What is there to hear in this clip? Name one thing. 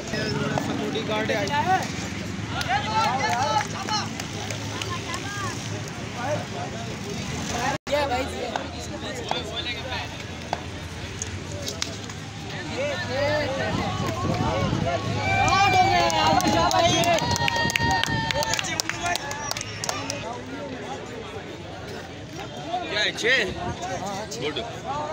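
A crowd of men talks and shouts outdoors.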